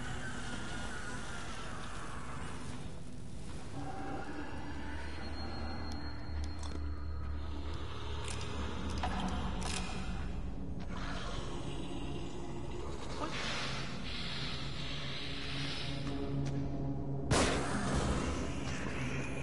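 Footsteps creep softly across a hard floor.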